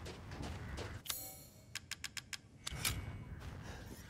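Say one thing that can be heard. A metal crank wheel clicks as it turns.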